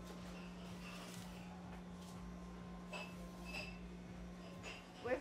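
Footsteps tread slowly on a hard floor.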